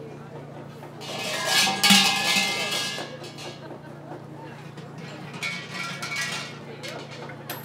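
Small metal bells jangle and rattle as their ropes are shaken.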